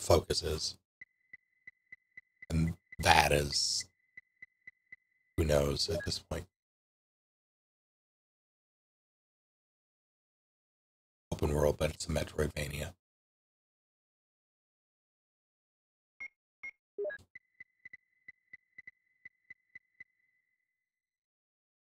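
An electronic heart monitor beeps in a quick, steady pulse.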